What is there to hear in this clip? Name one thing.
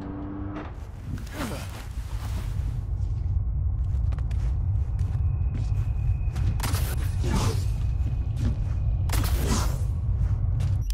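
Heavy footsteps thud on metal.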